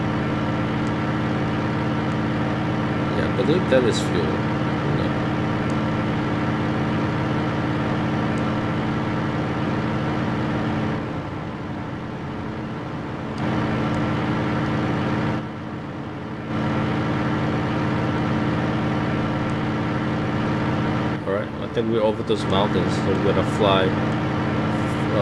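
A propeller engine drones steadily.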